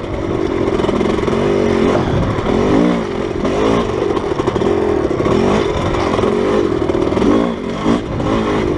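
A motorbike engine revs hard, rising and falling in pitch.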